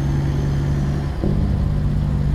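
A truck's engine shifts gear with a brief dip in its hum.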